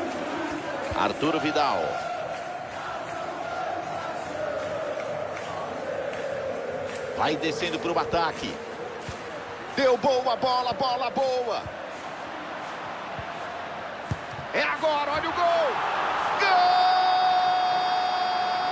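A stadium crowd murmurs steadily and roars louder near the end.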